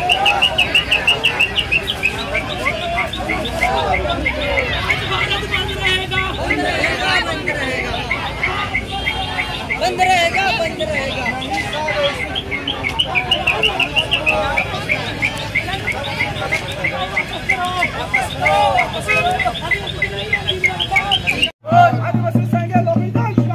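A crowd of men and women chants slogans loudly outdoors.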